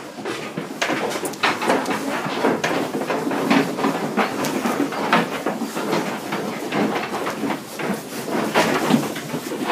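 Pigs shuffle and bump against metal bars.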